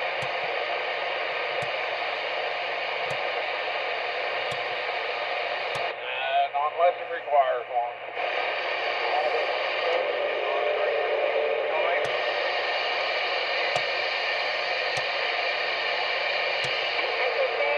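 A radio clicks sharply each time its channel changes.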